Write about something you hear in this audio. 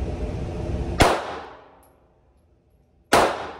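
A pistol fires sharp, loud shots that echo briefly in an enclosed room.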